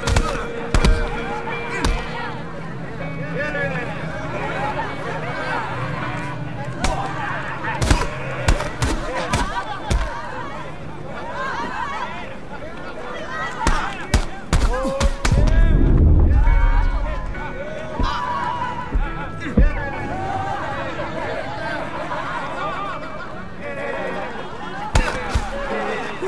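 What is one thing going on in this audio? Fists thud heavily against a body in a fistfight.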